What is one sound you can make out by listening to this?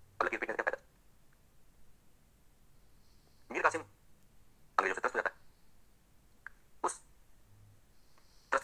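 A man speaks in short bursts with animation, close to a microphone.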